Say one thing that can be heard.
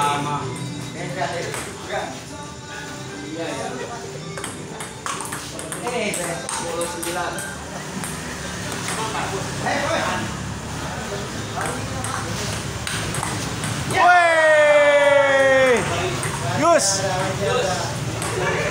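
A crowd of men chatter and call out nearby.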